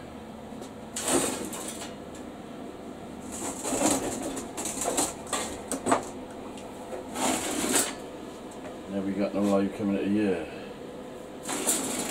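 A metal box clatters and knocks on a workbench.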